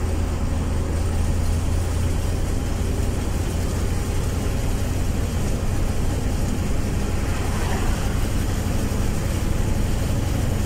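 Tyres roar steadily on a paved road.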